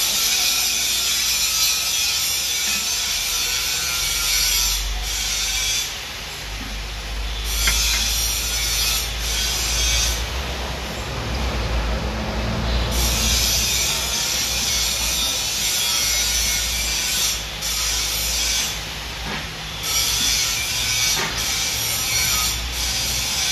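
A metal lathe hums and whirs steadily.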